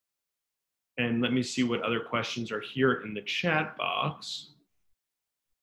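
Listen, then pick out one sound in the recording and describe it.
A young man speaks calmly and close to the microphone, as if on an online call.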